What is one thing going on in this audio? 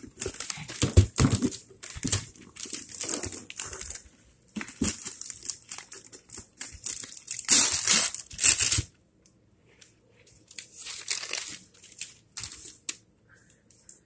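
Wrapping paper rustles and tears close by.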